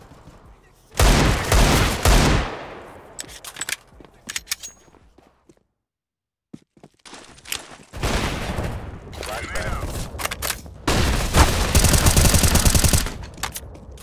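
Loud gunshots fire in quick bursts.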